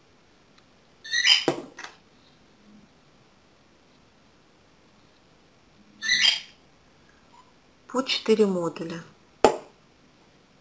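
A plastic glue bottle squirts and sputters.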